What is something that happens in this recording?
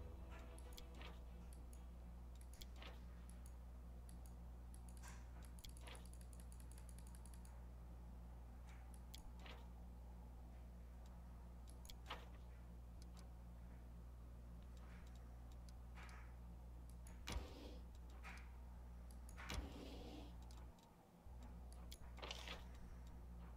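Soft menu clicks sound now and then.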